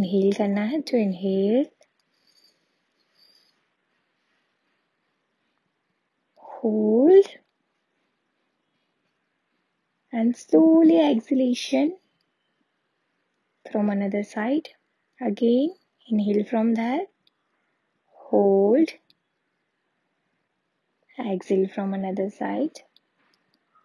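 A young woman speaks calmly and clearly into a nearby microphone, in short phrases with pauses.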